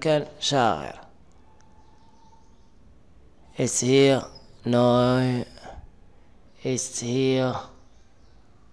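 A man speaks slowly and clearly into a microphone, pausing between phrases.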